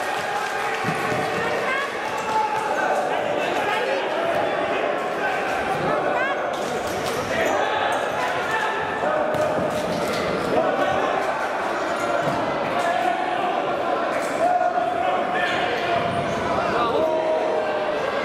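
Sports shoes squeak on a wooden floor.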